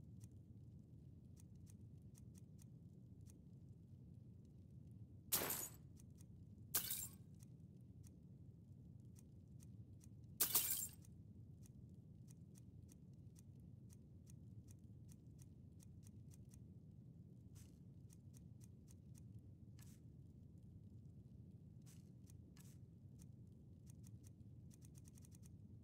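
Soft menu clicks tick quickly as a list scrolls.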